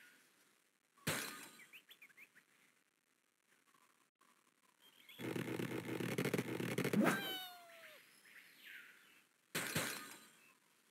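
Blocks crash.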